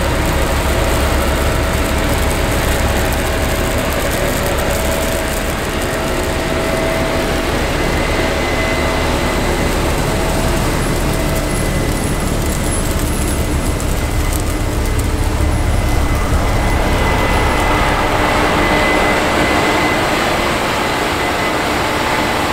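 A tractor engine rumbles loudly close by.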